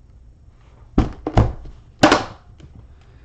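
A metal case snaps shut with sharp clicks.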